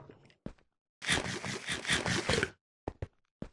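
Crunchy munching of food rings out in quick bites.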